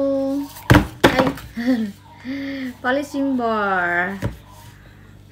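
Small cardboard boxes knock and tap.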